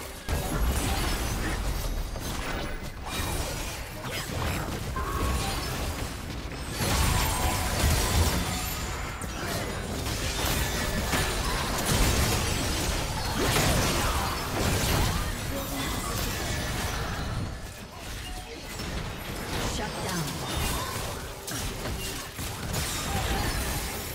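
Magic blasts and sword hits clash and crackle in a busy fight.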